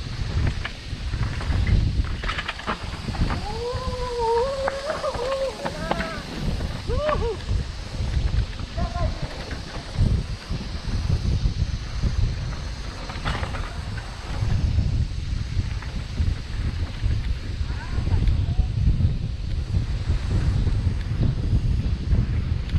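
Bicycle tyres roll and rattle over a rough dirt trail.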